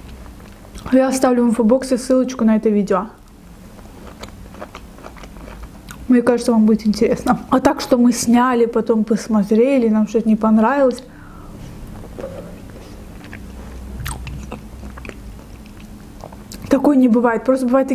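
A young woman talks calmly and close to a microphone.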